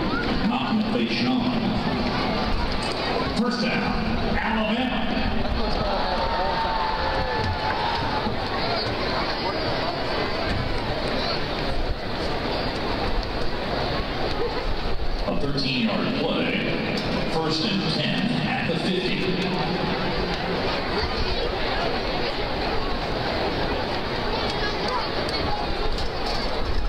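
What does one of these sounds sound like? A large stadium crowd murmurs and cheers steadily all around.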